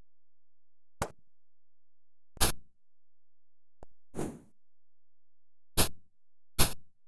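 Short, sharp electronic blows and crunches ring out in a sudden flurry.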